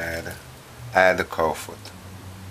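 Pieces of meat drop into a metal pot.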